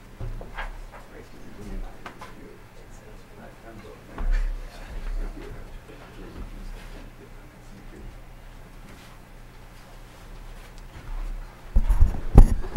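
An audience murmurs quietly.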